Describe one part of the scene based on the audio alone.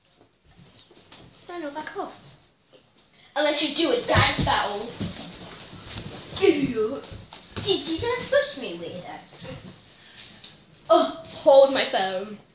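A second young girl talks close by.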